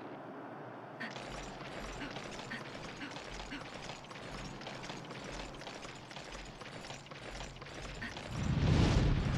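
Footsteps run over rocky ground.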